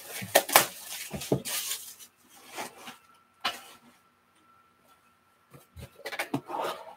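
Boxes knock and rattle as they are set down and slid on a table.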